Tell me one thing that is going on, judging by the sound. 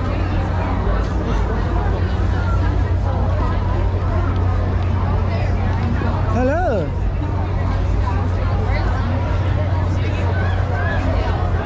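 A large crowd of young men and women chatters and calls out all around outdoors.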